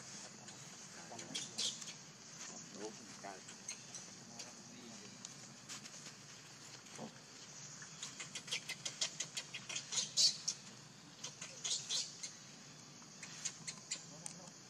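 Dry leaves rustle as monkeys move on the ground.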